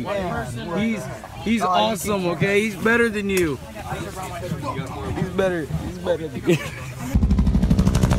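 Young men talk and laugh loudly close by.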